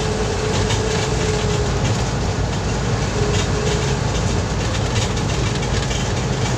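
The bus body rattles and vibrates on the road.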